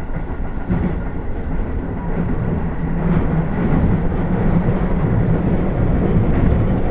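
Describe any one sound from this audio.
A train rumbles steadily along the rails, heard from inside the cab.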